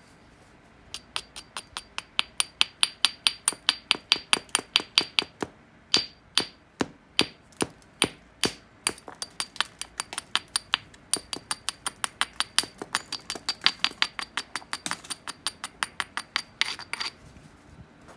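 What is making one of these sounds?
A tool scrapes and clicks rapidly against the edge of a glassy stone.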